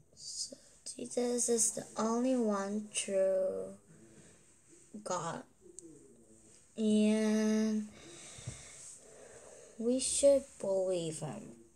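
A young girl speaks close to a microphone, telling a story with animation.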